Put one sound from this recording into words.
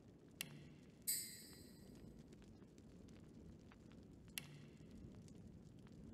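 A soft game chime sounds as a marker is placed.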